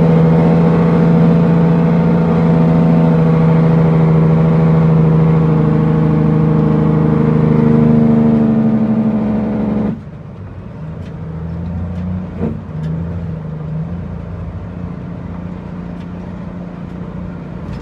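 Tyres roll over a bumpy road.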